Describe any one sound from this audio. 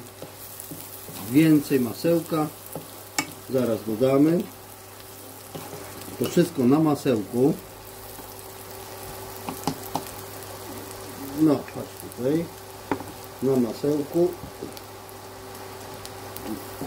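Onions sizzle softly in a hot pan.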